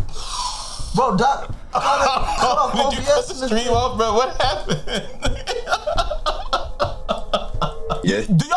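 A man laughs loudly and shouts.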